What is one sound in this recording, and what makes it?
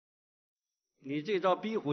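An older man speaks in a low, firm voice nearby.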